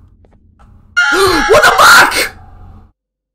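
A young man shouts in alarm close to a microphone.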